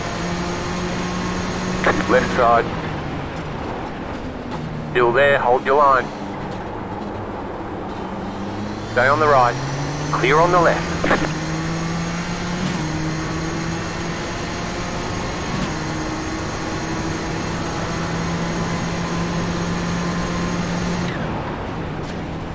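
A racing car engine drones steadily, its pitch rising and falling with gear changes.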